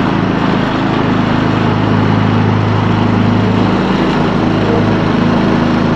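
A riding lawn mower engine runs with a steady loud rumble close by.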